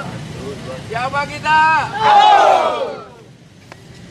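A group of men shout and cheer loudly in unison.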